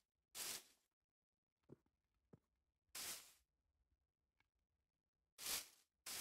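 Leaves rustle in short bursts as footsteps push through them.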